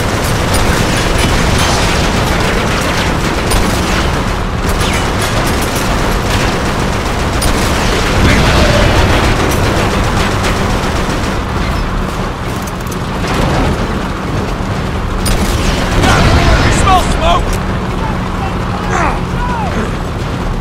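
Gunfire crackles in sharp bursts.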